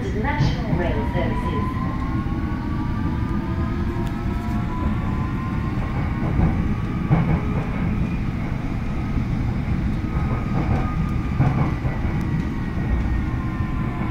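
The traction motors of an electric subway train whine, rising in pitch as it speeds up.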